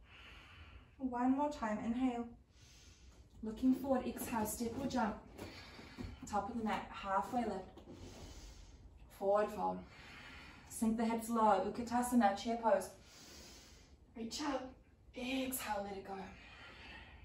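A young woman speaks calmly and steadily, close by.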